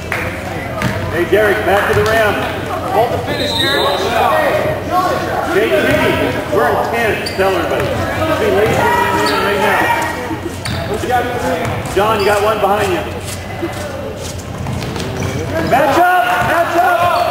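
Young men's voices talk and call out across a large echoing gym.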